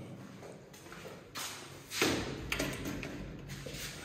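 A window latch clicks.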